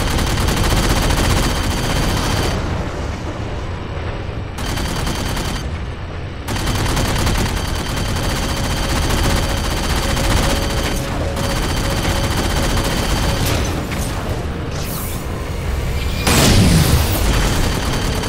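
A flying craft's engines roar steadily.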